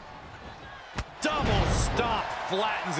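A heavy body thuds onto a wrestling ring mat.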